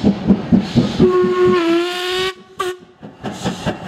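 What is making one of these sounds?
A steam locomotive's whistle blows briefly.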